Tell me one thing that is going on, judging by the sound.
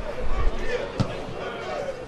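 A football is kicked hard with a dull thud.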